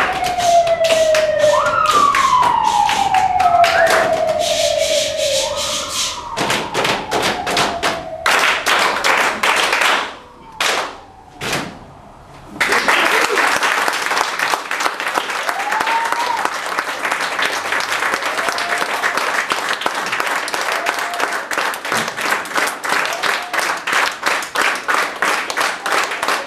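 Hands clap and slap the body in quick, rapid beats.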